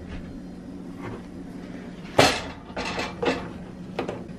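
Glass bottles clink together.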